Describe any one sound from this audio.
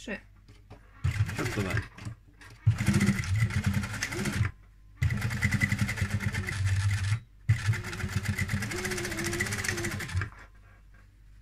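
A sewing machine runs in steady bursts, whirring and clattering.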